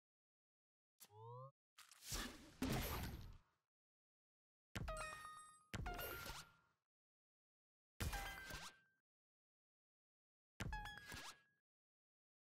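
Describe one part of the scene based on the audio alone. Game sound effects whoosh and chime as cards are played.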